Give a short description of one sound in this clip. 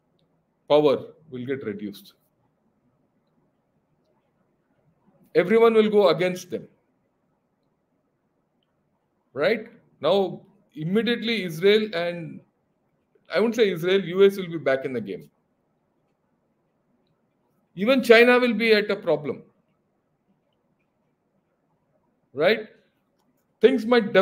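An older man speaks calmly in short phrases over an online call.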